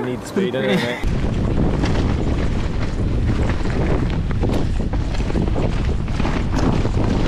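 Wind rushes loudly past a bicycle riding fast downhill.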